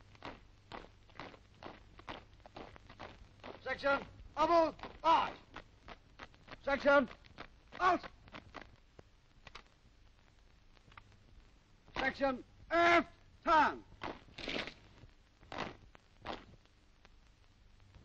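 Boots stamp and crunch in unison on hard ground.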